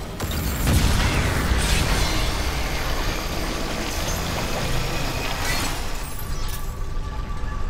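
A weapon fires in loud hissing bursts.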